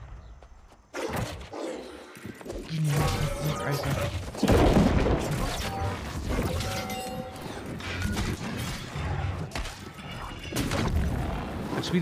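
Magic blasts and weapon strikes hit in quick bursts.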